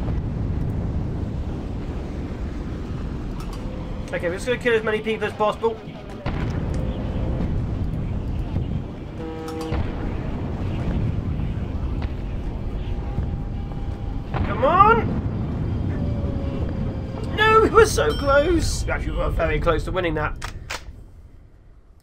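Explosions boom and rumble in quick succession.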